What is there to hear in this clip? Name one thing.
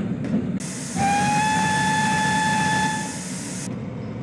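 A steam locomotive whistle blows a long steady note.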